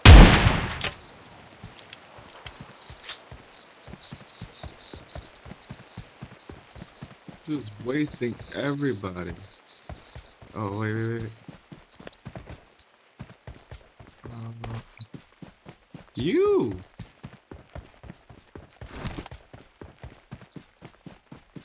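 Footsteps thud quickly through grass and dirt.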